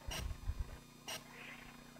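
Chalk scratches on a chalkboard.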